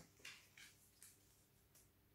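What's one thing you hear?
Cards shuffle softly in a young woman's hands.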